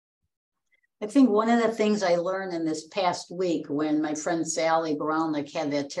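An elderly woman speaks over an online call.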